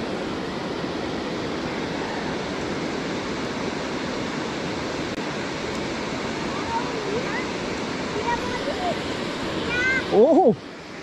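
Water rushes steadily over a weir.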